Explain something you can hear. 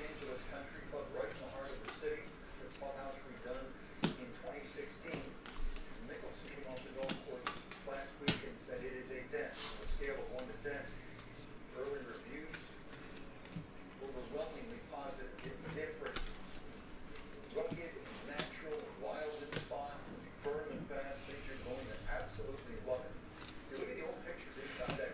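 Trading cards flick and slide against each other as they are shuffled.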